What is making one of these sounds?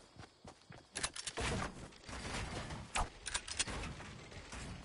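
Building pieces snap into place with sharp clunks.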